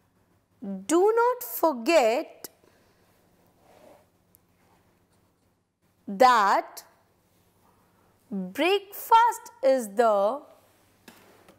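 A woman speaks calmly and clearly into a microphone, in short bursts with pauses.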